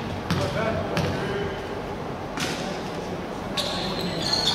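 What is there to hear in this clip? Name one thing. A basketball bounces on a hard court in a large echoing hall.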